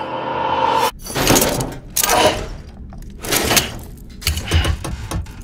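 A buckle clicks.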